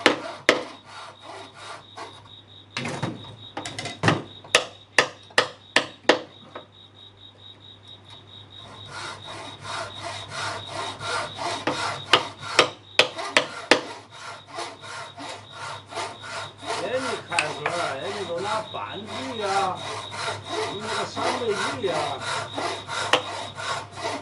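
A mallet knocks sharply on a chisel again and again.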